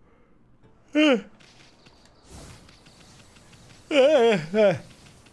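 A young man shouts loudly and excitedly close to a microphone.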